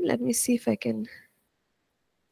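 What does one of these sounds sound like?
A woman speaks calmly into a close microphone.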